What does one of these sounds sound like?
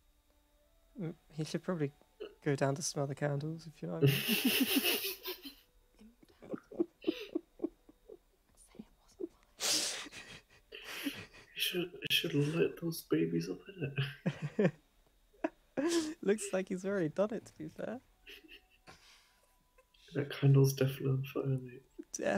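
A second young man laughs and talks with animation over an online call.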